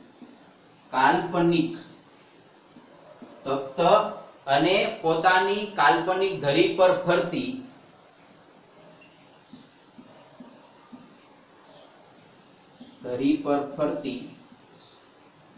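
A man speaks calmly and clearly up close, as if teaching.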